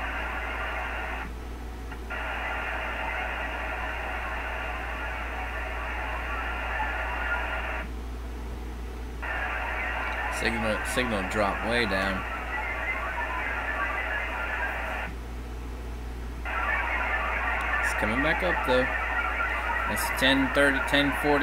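A radio data signal buzzes in long bursts of hissing noise.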